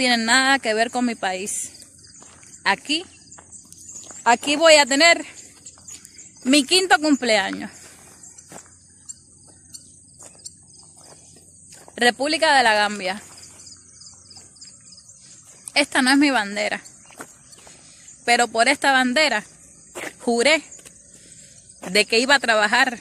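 A woman talks close to the microphone, with pauses between phrases.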